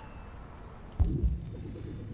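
A heavy thud sounds close by.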